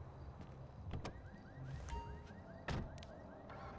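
A car door opens and shuts with a thud.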